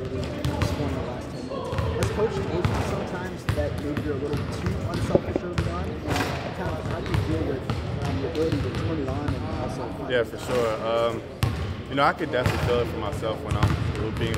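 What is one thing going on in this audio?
Basketballs bounce on a hard court in a large echoing gym.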